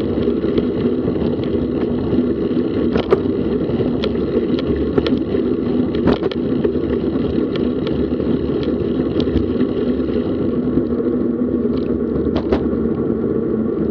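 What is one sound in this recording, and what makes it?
A bicycle rattles and clicks over a paved path.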